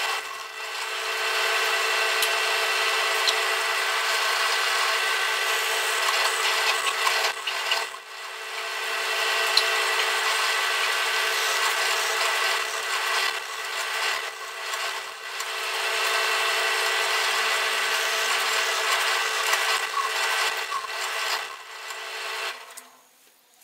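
A drill press motor whirs steadily.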